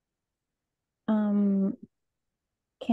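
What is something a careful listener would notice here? A young person speaks briefly through an online call.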